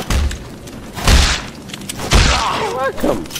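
Gunshots blast loudly, close by.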